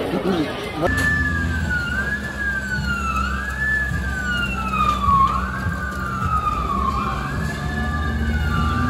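A siren wails up and down.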